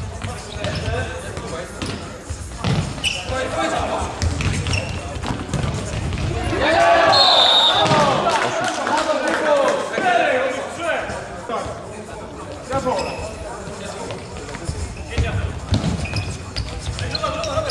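Players' shoes squeak and thump on a hard floor in a large echoing hall.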